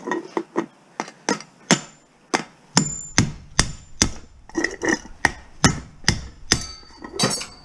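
A metal hammer strikes metal in sharp, repeated blows.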